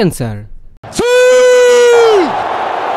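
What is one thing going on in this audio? A man shouts loudly and long, close up.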